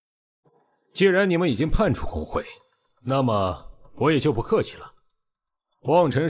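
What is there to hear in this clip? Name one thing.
A man speaks firmly and with force.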